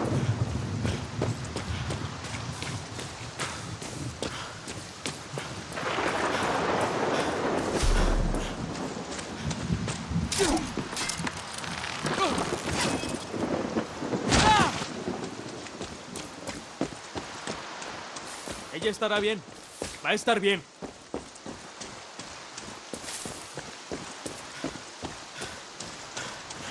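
Footsteps crunch steadily on gravel and rock.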